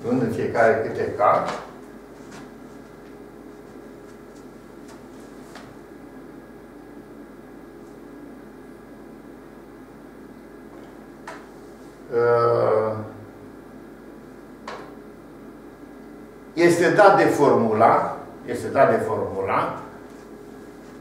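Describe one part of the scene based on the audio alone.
An elderly man speaks calmly in short bursts, explaining.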